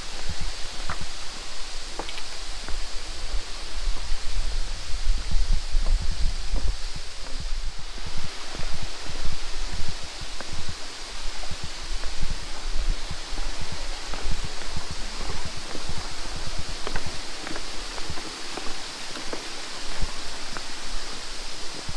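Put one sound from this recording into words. Footsteps thud and creak on a wooden bridge.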